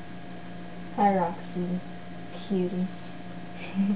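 A young woman speaks briefly close to a microphone.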